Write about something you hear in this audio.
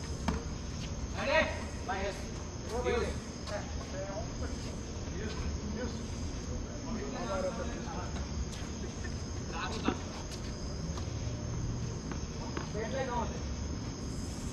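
Men call out to each other from a distance outdoors.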